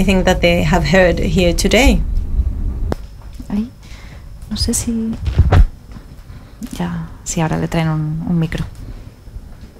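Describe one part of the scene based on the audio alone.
A woman speaks calmly and with animation through a headset microphone.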